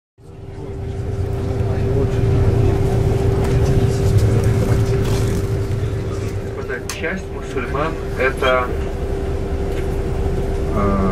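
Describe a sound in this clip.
A bus engine hums steadily as it drives through city traffic.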